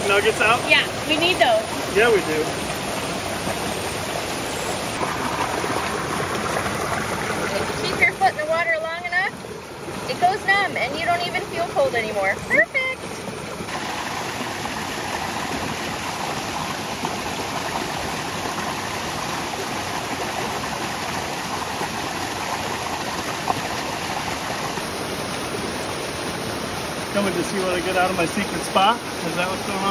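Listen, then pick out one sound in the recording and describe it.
A stream rushes and gurgles over rocks nearby.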